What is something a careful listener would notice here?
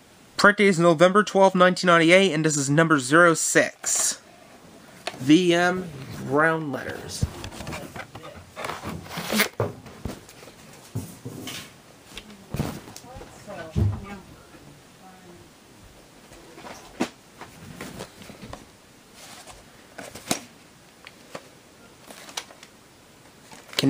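Hands handle plastic videotape cases.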